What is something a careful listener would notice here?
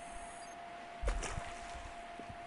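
A heavy thud sounds as a figure lands on the ground.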